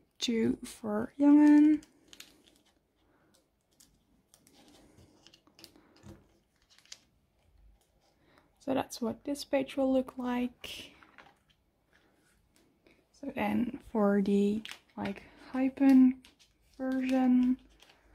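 Plastic sleeves crinkle softly as cards are slid into them.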